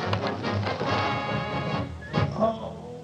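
A crowd of men shouts and cheers.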